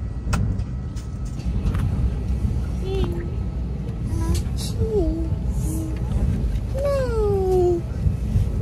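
A low, steady rumble of an aircraft cabin fills the background.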